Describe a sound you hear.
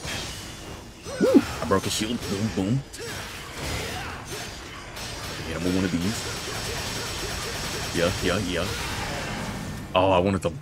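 Sword blades slash and clash in quick succession.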